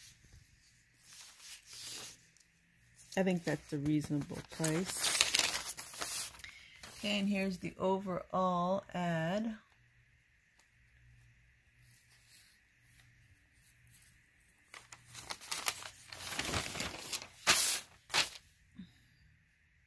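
Paper pages rustle and crinkle as they are handled and turned.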